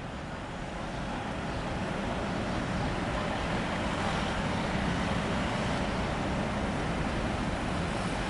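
Cars drive by on the road.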